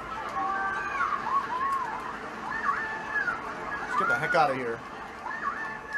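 Video game kart engines whine and rev through a television speaker.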